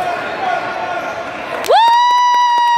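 A crowd of spectators murmurs in a large echoing hall.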